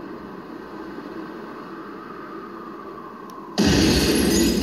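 A truck crashes heavily onto rocks.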